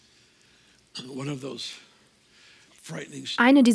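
An older man speaks calmly through a microphone in a large hall.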